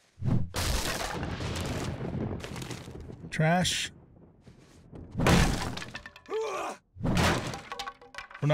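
A sledgehammer bangs against a wooden door.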